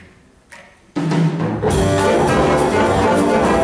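A jazz band with saxophones and brass starts playing loudly.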